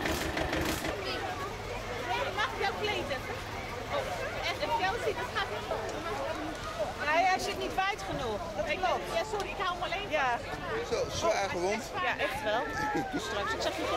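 Several women and men talk and laugh nearby.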